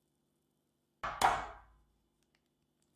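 An egg cracks sharply against a glass jug.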